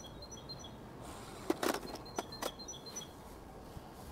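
Metal model rail pieces click as they are fitted together.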